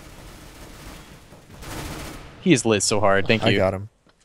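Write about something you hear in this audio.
A submachine gun fires a quick burst of shots.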